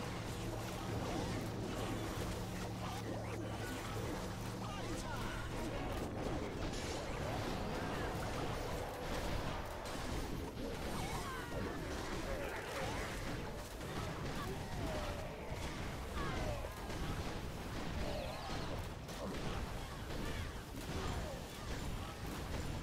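Game battle effects crash and boom continuously.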